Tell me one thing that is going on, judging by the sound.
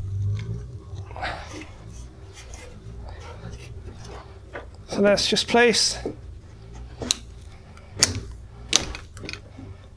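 A control panel knocks and clatters as it is lifted and fitted onto a cabinet.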